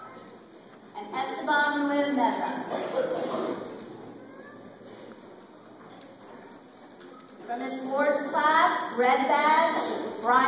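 A woman speaks calmly into a microphone, heard over loudspeakers in a large echoing hall.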